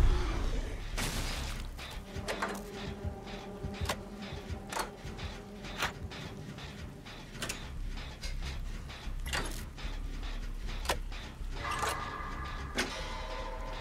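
Footsteps thud on wet ground.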